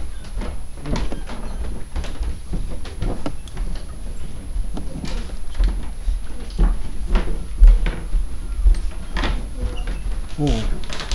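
Footsteps thud softly on a wooden floor and straw mats.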